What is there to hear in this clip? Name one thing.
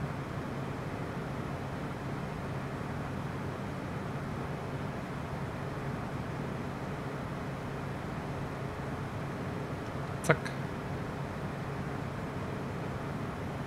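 A jet engine drones steadily in a cabin.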